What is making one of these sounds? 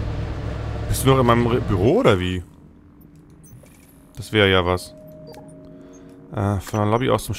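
Electronic menu chimes ring out in short pitched bursts.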